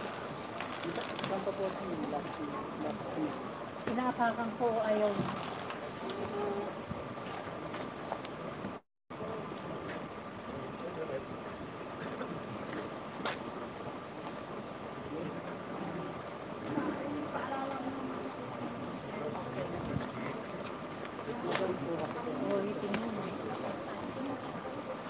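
A woman talks nearby outdoors.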